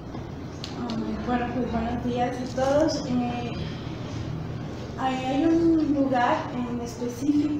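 A woman speaks calmly into a microphone in a room with slight echo.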